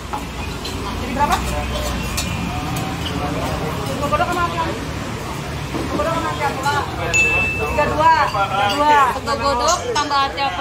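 Food sizzles in a pan.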